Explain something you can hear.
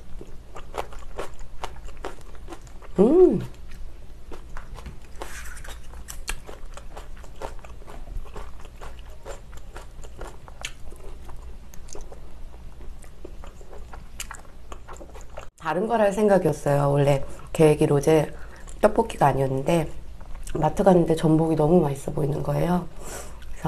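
Chopsticks clink against a pan.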